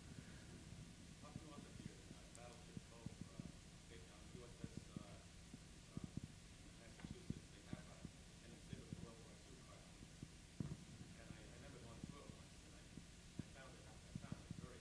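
A middle-aged man speaks calmly into a microphone in a large echoing hall.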